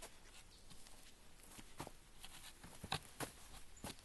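A wooden staff taps the ground.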